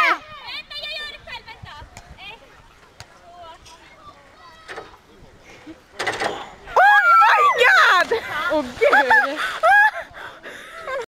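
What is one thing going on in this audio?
Young people shout and cheer outdoors.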